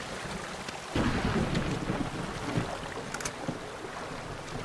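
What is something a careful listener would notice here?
Water splashes as a man wades through it.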